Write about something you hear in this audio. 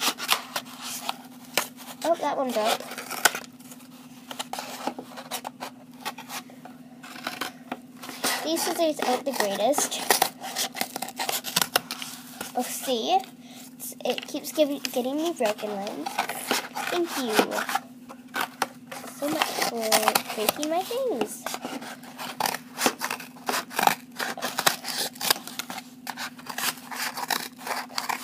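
Scissors snip through a cardboard tube.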